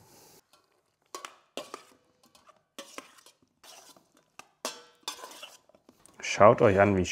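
A spoon clinks and scrapes against a metal bowl.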